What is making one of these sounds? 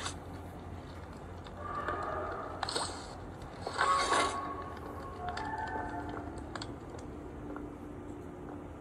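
Game music and sound effects play from a tablet's small speaker.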